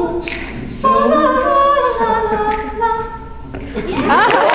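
A young woman sings solo through a microphone in a large hall.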